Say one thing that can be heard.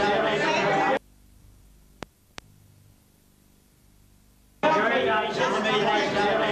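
Women chatter nearby.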